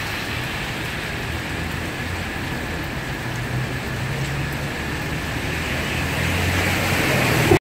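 Heavy rain pours down steadily outdoors and grows a little louder.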